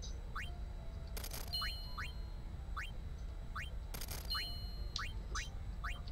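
Short rising electronic blips sound again and again as a menu cursor moves.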